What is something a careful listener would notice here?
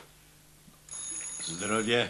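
Liquor pours from a bottle into a small glass.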